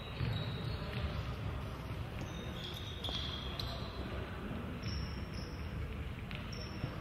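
A ball thuds off a player's foot.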